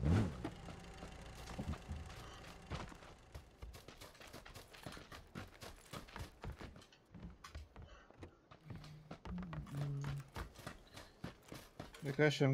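Footsteps crunch over grass and wooden boards.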